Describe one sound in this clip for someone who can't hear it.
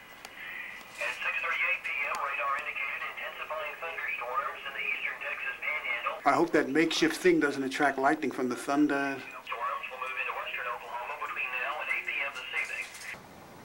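A middle-aged man talks quietly and close by, with a thin, muffled sound.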